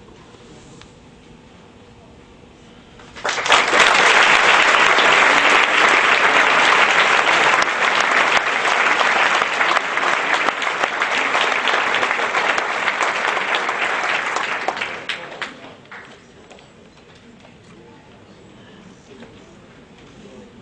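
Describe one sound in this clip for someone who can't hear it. An accordion plays softly.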